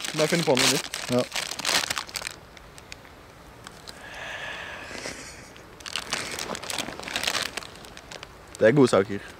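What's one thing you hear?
A crisp plastic bag crinkles and rustles.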